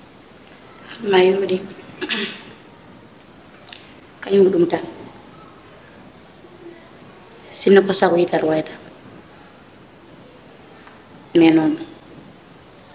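A young woman speaks nearby in short, upset bursts.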